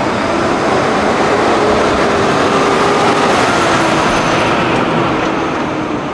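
A truck engine rumbles past up close.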